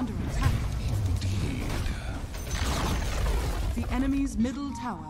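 Game spell effects crash and whoosh during a fight.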